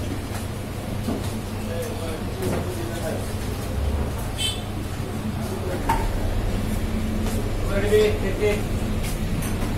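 A man speaks casually close by.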